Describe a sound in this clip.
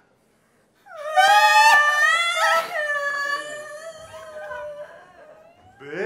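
A woman sings a high, wavering note through loudspeakers.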